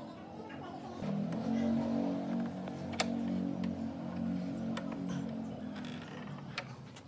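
A clamp screw is cranked tight with a ratcheting turn.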